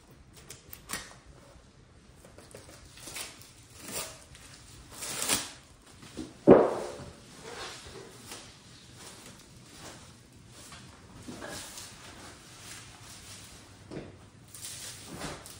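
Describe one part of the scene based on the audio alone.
Scissors snip through plastic film.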